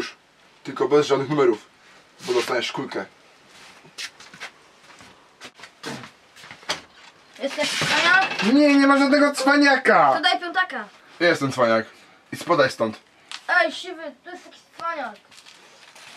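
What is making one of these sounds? A young man speaks nearby in short, tense phrases.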